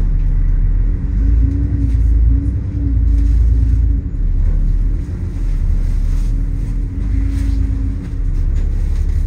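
A bus engine revs up and down as the bus pulls away.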